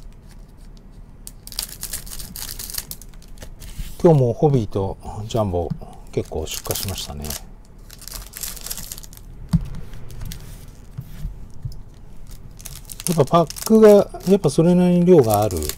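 Scissors snip through a foil wrapper.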